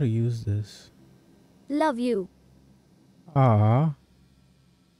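A man speaks in short, animated bursts close to a microphone.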